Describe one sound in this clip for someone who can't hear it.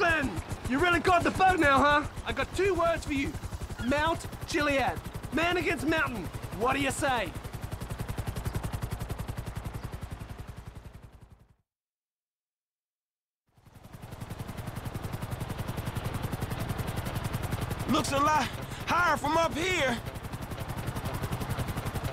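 A helicopter's rotor thumps rapidly and steadily overhead.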